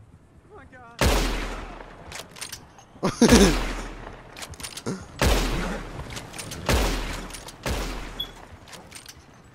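Rifle shots ring out loudly and echo across open country.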